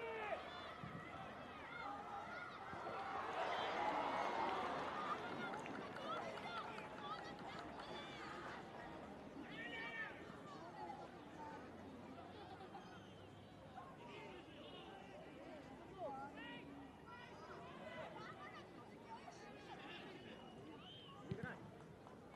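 A stadium crowd roars and cheers outdoors.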